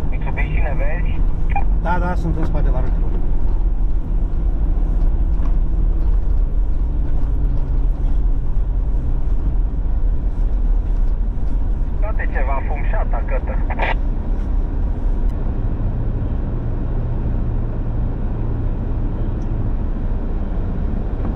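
An engine rumbles steadily from inside a moving vehicle.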